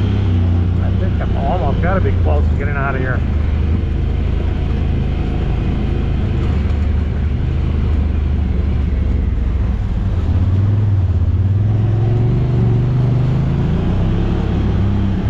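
An off-road vehicle's engine rumbles steadily up close.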